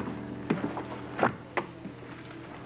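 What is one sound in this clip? A phone handset is set down with a clunk.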